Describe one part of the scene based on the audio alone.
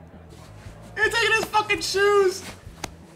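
A young man talks excitedly close to a microphone.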